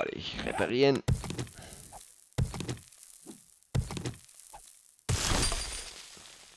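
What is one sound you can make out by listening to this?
A stone axe strikes rock with sharp, dull knocks.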